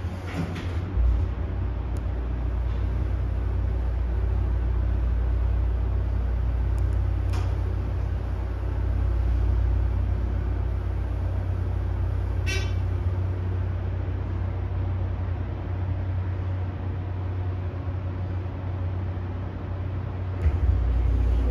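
A hydraulic elevator's pump motor hums as the car rises.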